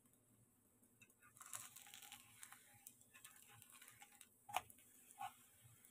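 A metal fork scrapes against a pan.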